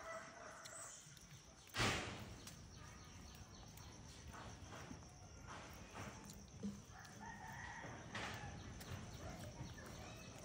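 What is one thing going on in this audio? A monkey bites and chews juicy fruit with wet smacking sounds.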